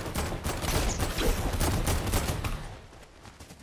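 A pickaxe swings and strikes repeatedly.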